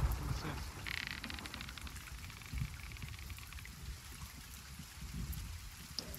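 Heavy rain pours down in a storm.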